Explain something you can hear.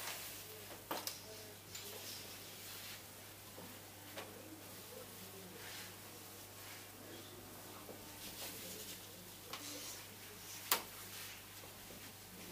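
A fabric scarf rustles as hands lay it down on a flat surface.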